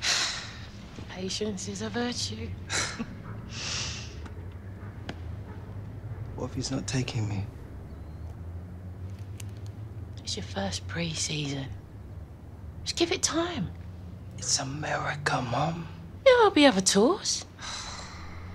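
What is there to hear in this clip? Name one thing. A woman speaks calmly and gently.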